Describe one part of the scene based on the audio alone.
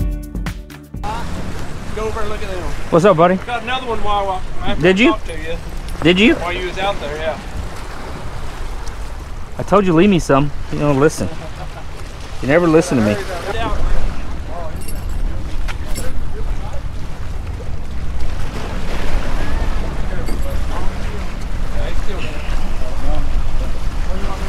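Waves splash against rocks.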